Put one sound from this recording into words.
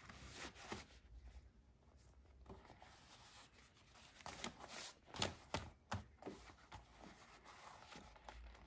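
Thick felt-like fabric rustles and rubs as it is handled and folded.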